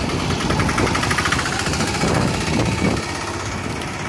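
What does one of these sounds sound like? A three-wheeled taxi's small engine rattles past close by.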